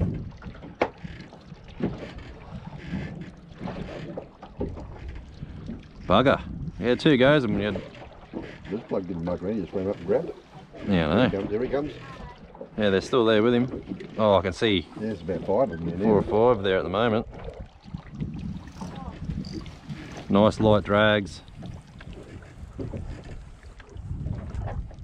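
Water laps gently against a boat hull.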